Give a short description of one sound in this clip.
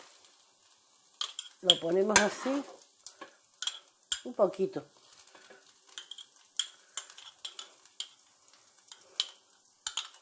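A spoon scrapes and taps against a small glass.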